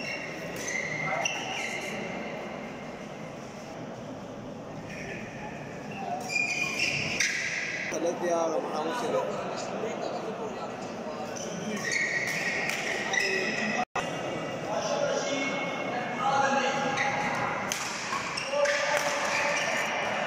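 Voices of a crowd murmur in a large echoing hall.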